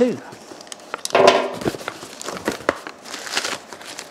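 Cardboard box flaps rustle as they are opened.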